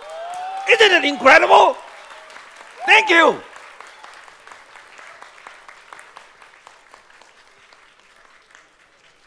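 A large crowd claps and cheers.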